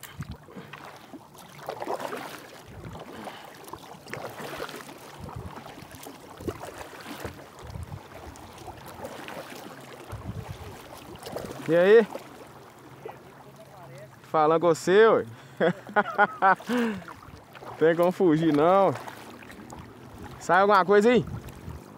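A kayak paddle dips and splashes softly in calm water.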